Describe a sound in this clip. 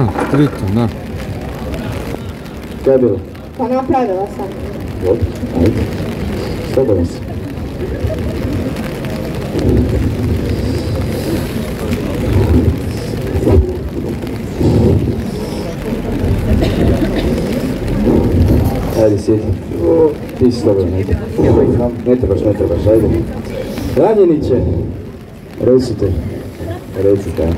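A man speaks through a loudspeaker outdoors.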